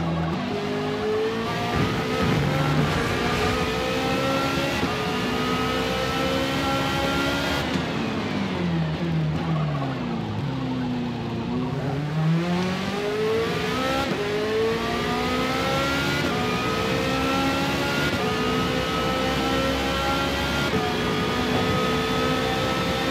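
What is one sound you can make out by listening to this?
A racing car engine roars loudly, climbing in pitch through the gears.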